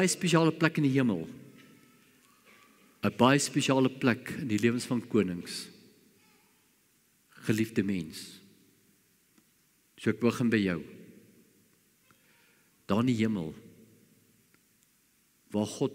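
An elderly man speaks calmly through a microphone in phrases with pauses, in a room with a slight echo.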